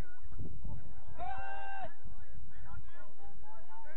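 Young players shout to each other in the distance across an open field.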